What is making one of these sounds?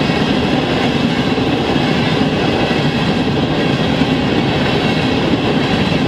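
A crossing bell rings rapidly and steadily.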